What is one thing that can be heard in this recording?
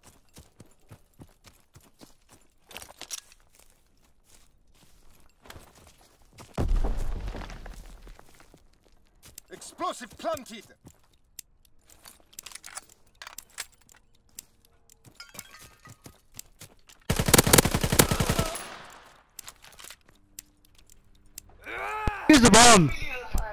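Footsteps crunch on sand and gravel.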